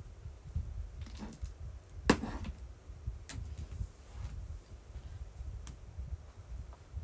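Clothing rustles and brushes close by.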